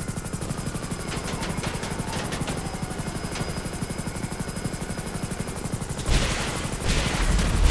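A helicopter's rotor thumps in a fast, steady beat.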